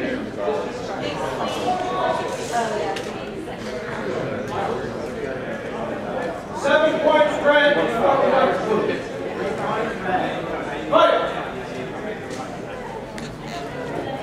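Several men talk together in a large echoing hall.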